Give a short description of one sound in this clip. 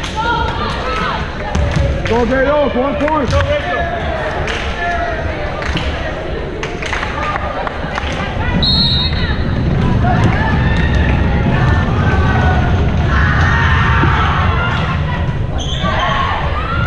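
A crowd cheers and chatters in a large echoing hall.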